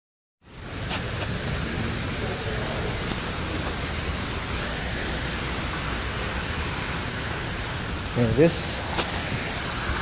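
A fountain splashes steadily nearby.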